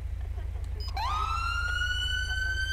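A police siren winds up and wails.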